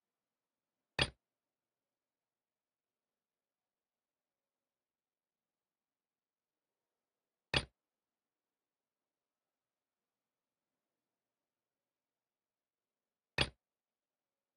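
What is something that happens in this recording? A short sharp click sounds three times, seconds apart.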